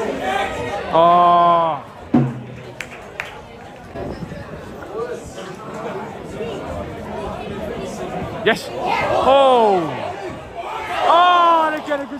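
Men in the crowd shout loudly now and then.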